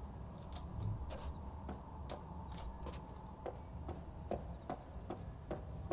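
Soft footsteps tap steadily on pavement.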